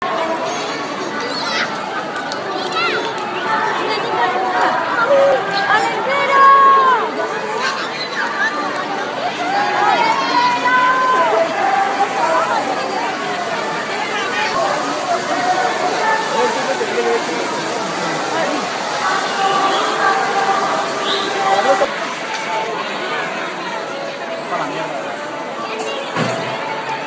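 A large crowd chatters outdoors all around.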